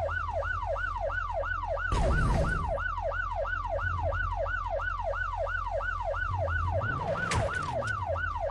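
A police siren yelps in a fast, rising and falling cycle.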